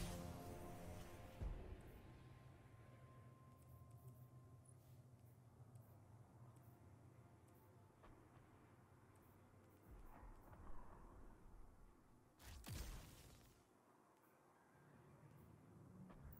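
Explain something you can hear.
Soft electronic clicks sound as menu items are picked.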